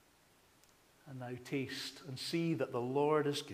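A man speaks calmly through a microphone in a large echoing room.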